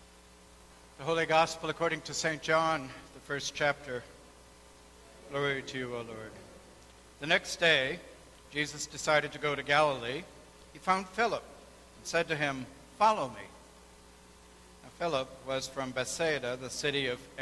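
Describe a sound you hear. A man reads aloud calmly through a microphone in a large echoing room.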